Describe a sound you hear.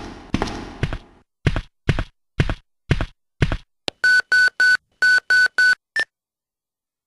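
Heavy footsteps thud on hard pavement, then stop.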